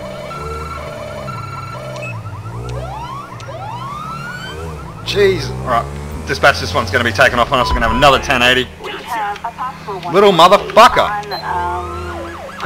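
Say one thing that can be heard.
A police siren wails in rising and falling sweeps.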